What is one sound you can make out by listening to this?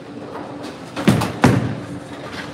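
A bowling ball thuds onto a wooden lane.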